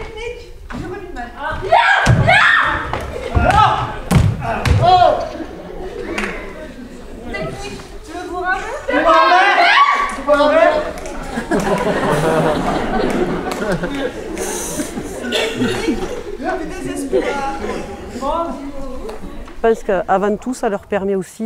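A group of performers sings together on a stage in a large hall.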